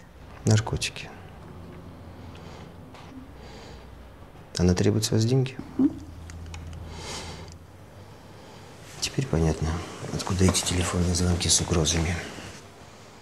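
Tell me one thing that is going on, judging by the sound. A man speaks calmly in a low voice nearby.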